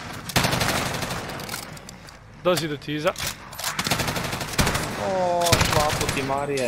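A rifle fires loud, sharp shots in short bursts.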